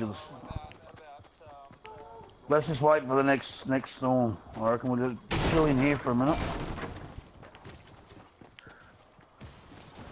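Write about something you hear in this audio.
Footsteps patter on grass and wooden boards.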